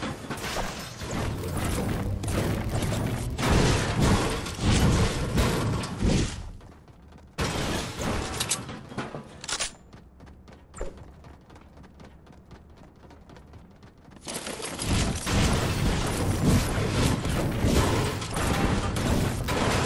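A pickaxe strikes a wall with sharp, repeated cracks.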